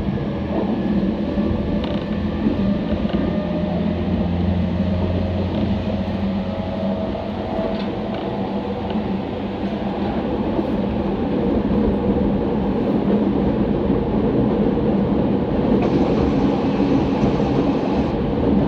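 An electric commuter train rumbles along the rails at speed, heard from inside a carriage.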